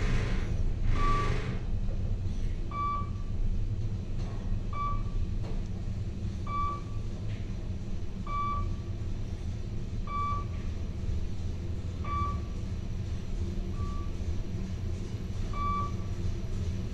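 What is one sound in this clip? An elevator chimes with a short beep at each floor it passes.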